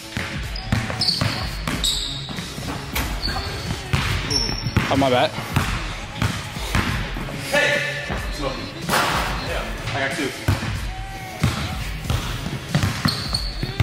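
A basketball bounces on a hardwood court in a large echoing gym.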